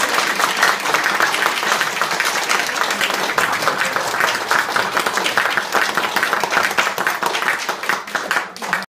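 An audience claps and applauds in a room.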